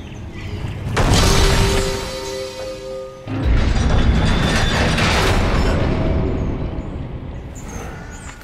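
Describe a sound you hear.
A heavy stone mechanism grinds and rumbles loudly.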